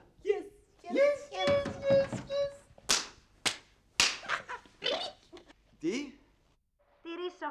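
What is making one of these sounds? Two men laugh loudly close by.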